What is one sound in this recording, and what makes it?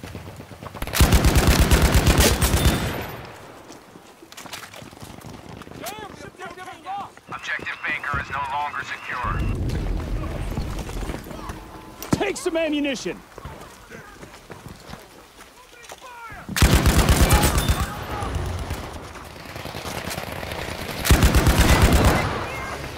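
A machine gun fires loud, rapid bursts.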